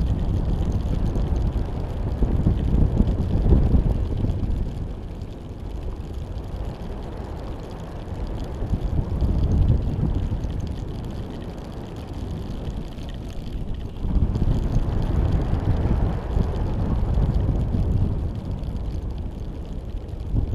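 Wind rushes and buffets in strong gusts.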